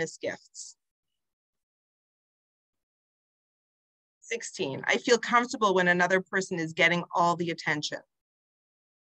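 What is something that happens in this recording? A woman speaks calmly and softly over an online call.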